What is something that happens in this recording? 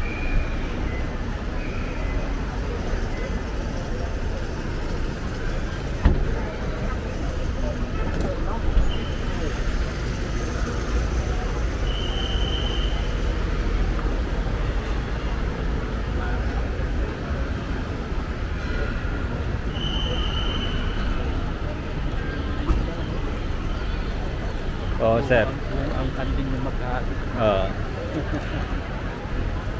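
A busy crowd murmurs outdoors.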